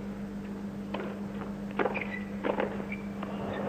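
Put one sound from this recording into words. A tennis ball is struck back and forth with sharp pops of the rackets.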